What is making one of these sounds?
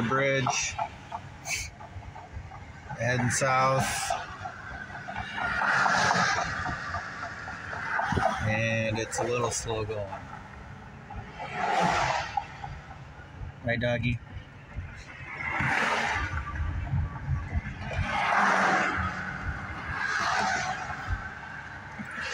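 Wind rushes past a moving car.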